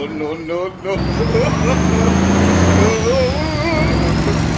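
A heavy truck engine rumbles loudly.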